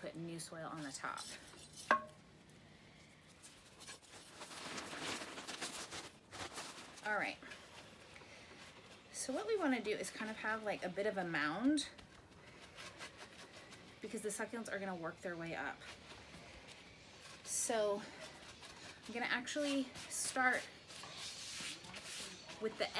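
Gloved hands scrape and press soil in a pot.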